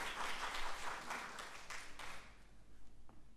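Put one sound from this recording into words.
An audience applauds in a large hall and the clapping dies away.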